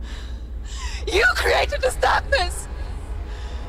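A young woman shouts in rage.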